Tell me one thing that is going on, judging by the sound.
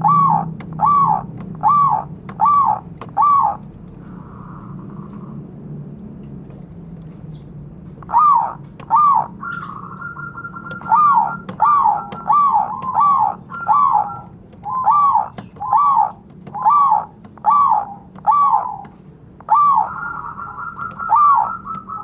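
A zebra dove coos in a string of short notes.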